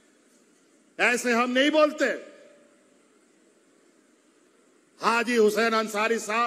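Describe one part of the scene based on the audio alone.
A middle-aged man speaks forcefully into a microphone, heard over a loudspeaker.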